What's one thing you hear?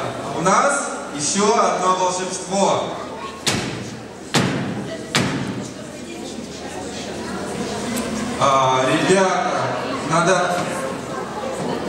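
A man speaks loudly and theatrically through a microphone and loudspeakers in an echoing hall.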